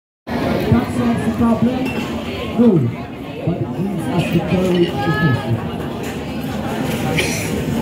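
Young people chatter and call out nearby, outdoors.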